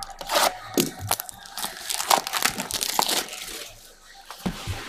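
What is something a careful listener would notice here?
Plastic wrap crinkles loudly.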